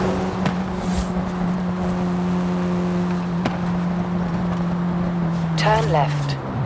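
A turbocharged four-cylinder car engine drones at high speed.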